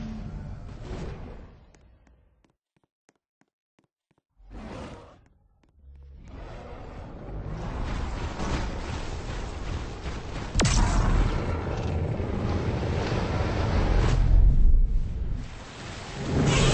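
Water splashes as a huge creature wades through it.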